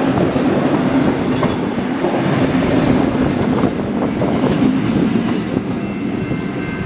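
A train rumbles past close by, its wheels clattering on the rails.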